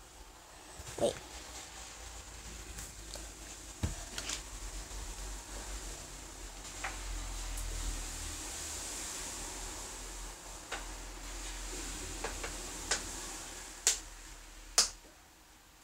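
A phone's microphone rubs and knocks as it is handled.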